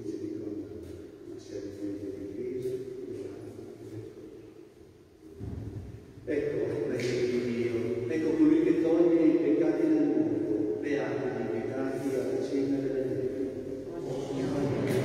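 An elderly man speaks and chants slowly through a microphone in a large echoing hall.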